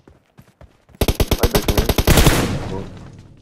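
A rifle fires a rapid burst nearby.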